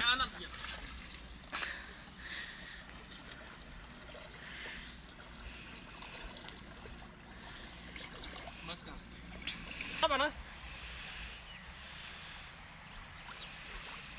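Water sloshes as a man wades through it.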